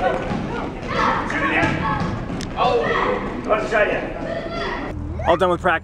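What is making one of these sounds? Children and adults chatter in a large echoing hall.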